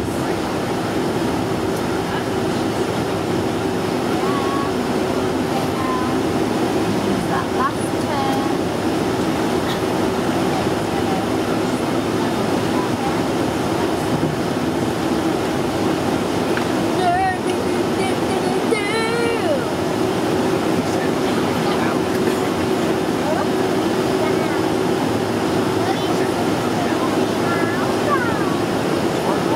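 Airliner wheels rumble over a runway.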